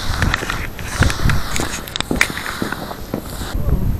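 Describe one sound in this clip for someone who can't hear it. Boots scrape and thud on hard ice.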